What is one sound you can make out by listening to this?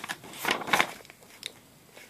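Book pages rustle under a child's hand.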